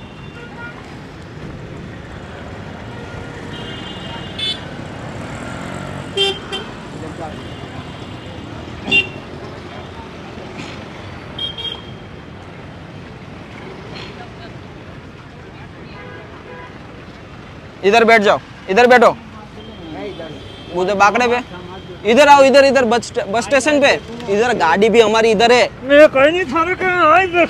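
Street traffic hums steadily in the background.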